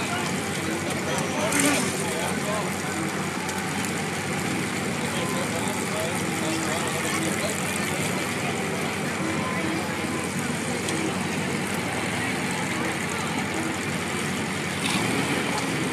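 Car engines rumble and rev loudly outdoors.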